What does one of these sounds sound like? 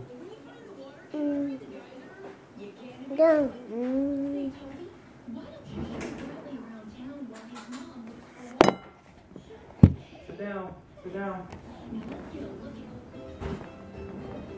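A small boy talks close by.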